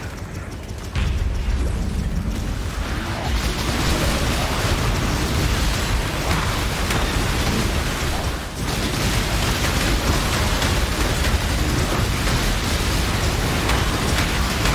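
Heavy booming impacts rumble low and loud.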